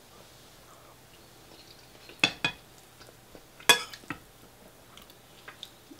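A man chews food with his mouth close to a microphone.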